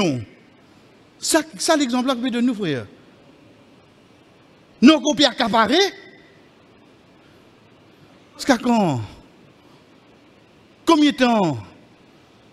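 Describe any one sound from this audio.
A man preaches into a microphone over loudspeakers in short, drawn-out phrases with pauses between them.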